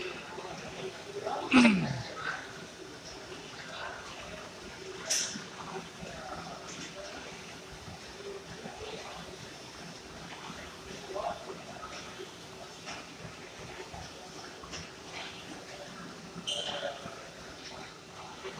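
Feet thud steadily on running treadmills.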